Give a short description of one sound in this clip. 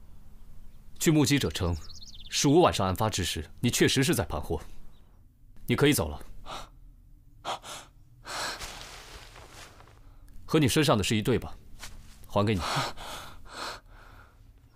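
Another man answers in a low, steady voice.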